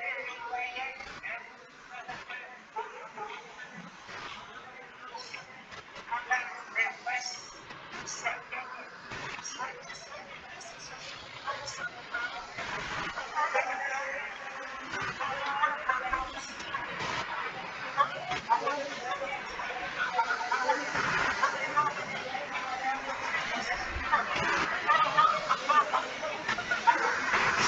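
A woman speaks over an online call, heard through a computer.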